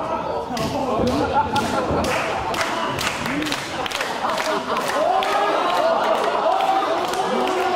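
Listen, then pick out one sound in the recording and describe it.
A crowd claps in rhythm.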